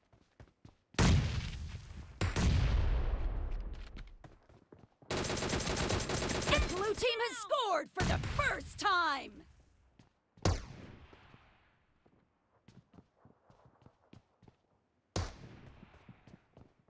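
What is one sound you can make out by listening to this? Gunfire bursts loudly in short volleys.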